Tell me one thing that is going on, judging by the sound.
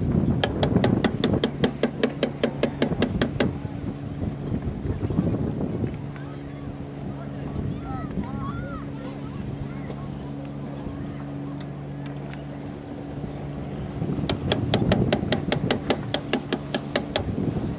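Small waves lap gently on open water.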